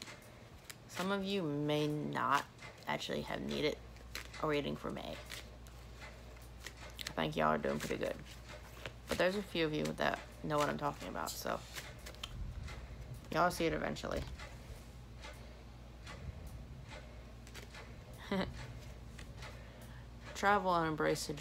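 A young woman speaks close to the microphone, in halting phrases with pauses.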